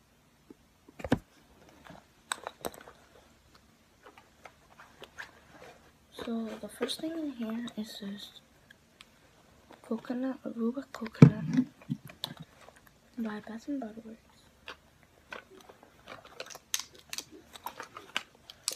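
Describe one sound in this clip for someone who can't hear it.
A bag's clasp clicks and rattles as it is handled.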